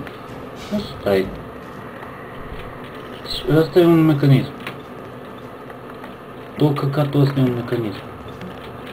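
A young man speaks close to a microphone in short bursts.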